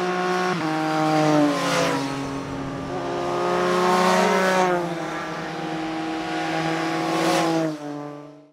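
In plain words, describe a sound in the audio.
Motorcycle engines roar past one after another, each dropping in pitch as it goes by.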